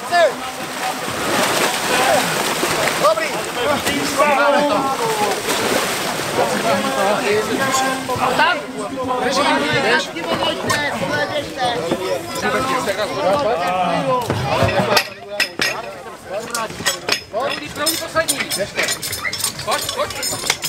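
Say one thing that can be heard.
A crowd of men shouts and cheers outdoors.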